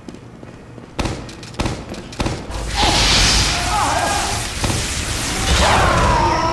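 A minigun spins up and fires in rapid bursts.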